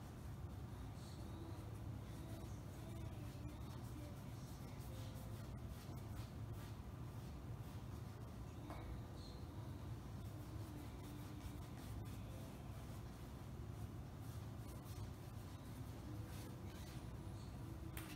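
A paintbrush dabs and swishes softly against a canvas.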